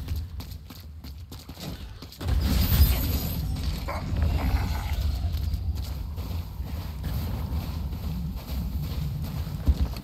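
Footsteps run steadily over rocky ground.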